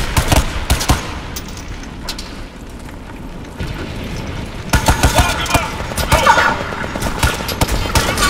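Heavy machine gun bursts fire rapidly.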